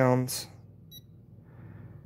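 An electronic device gives a short high beep.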